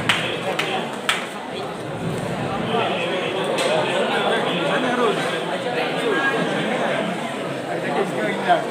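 A man speaks into a microphone through loudspeakers in a large echoing hall.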